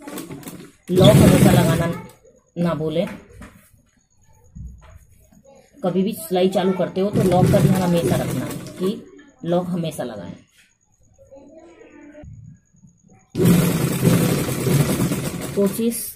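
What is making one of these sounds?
A sewing machine runs in short bursts, stitching cloth.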